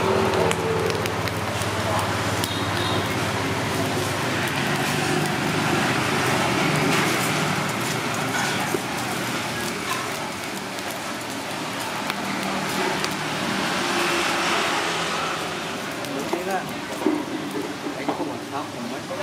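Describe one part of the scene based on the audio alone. Seafood sizzles and crackles over hot charcoal.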